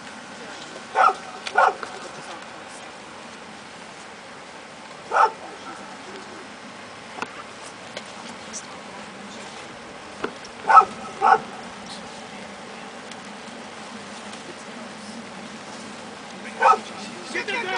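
A man shouts short commands outdoors.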